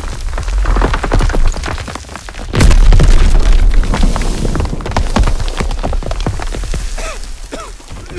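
Falling debris and rubble clatter down.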